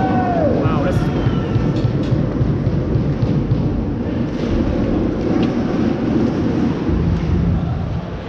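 Hockey sticks clack against a puck now and then.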